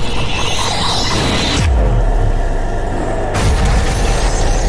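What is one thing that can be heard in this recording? A powerful energy beam roars.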